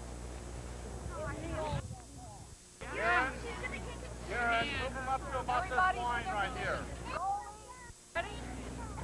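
Girls talk with animation nearby outdoors.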